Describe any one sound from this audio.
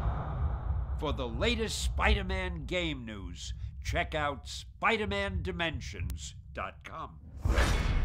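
An elderly man speaks with animation, close to a microphone.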